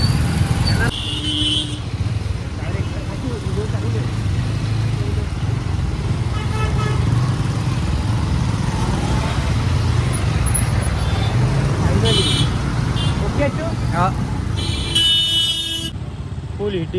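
Vehicle horns honk in heavy traffic.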